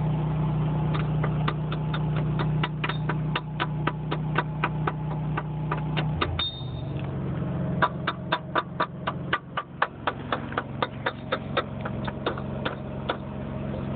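An air hammer pounds metal in quick, steady blows.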